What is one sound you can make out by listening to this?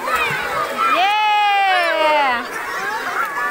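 A young child squeals loudly in a long, wavering cry.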